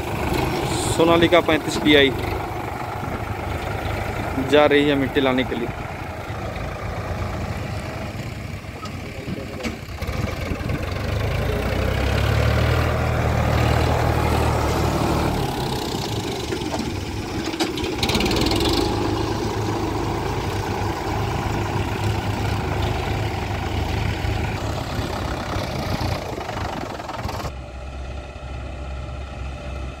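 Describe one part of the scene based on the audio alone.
A tractor engine chugs and rumbles nearby.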